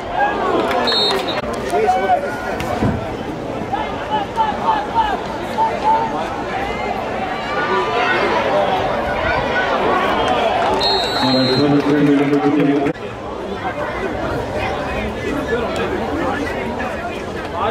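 A crowd cheers and shouts in outdoor stands.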